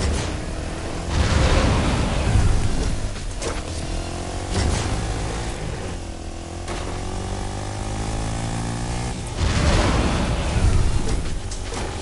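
A rocket boost whooshes loudly.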